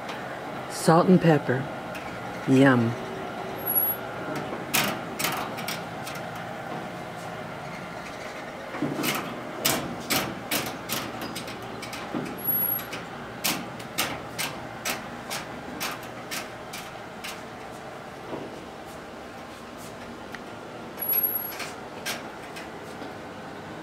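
A rotisserie motor hums steadily.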